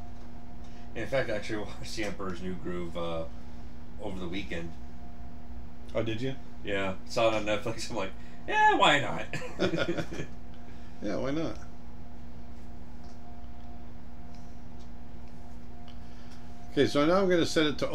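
A middle-aged man talks calmly and closely into a microphone, in short bursts.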